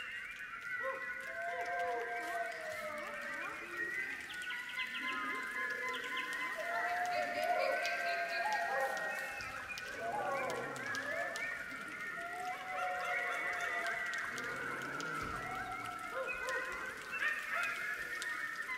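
A large choir of young voices sings with gliding, chant-like calls in an echoing hall.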